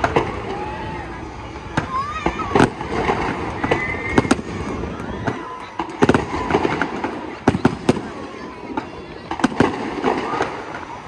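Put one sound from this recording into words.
Fireworks crackle and fizz.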